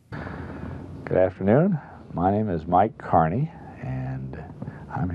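An older man speaks calmly and clearly into a nearby microphone.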